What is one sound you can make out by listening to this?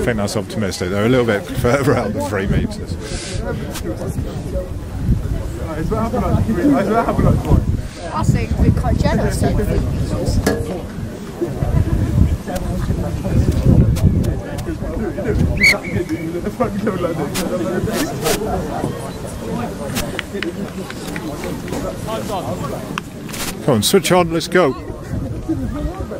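Young men shout calls to each other across an open field.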